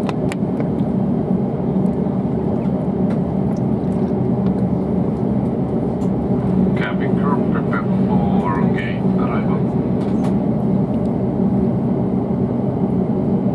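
A jet engine drones steadily, heard from inside an aircraft cabin.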